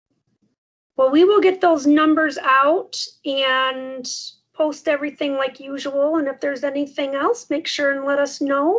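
A second woman speaks with animation over an online call.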